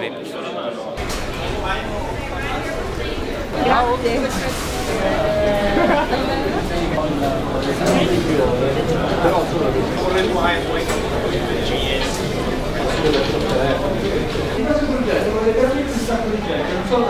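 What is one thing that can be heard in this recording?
A crowd of people chatters in an indoor hall.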